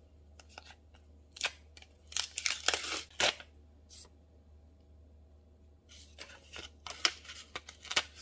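Sticky paper peels off a backing with a soft tearing sound.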